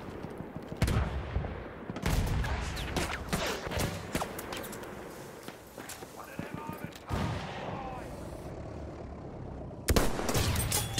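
Rifle shots crack loudly, each followed by a rumbling echo.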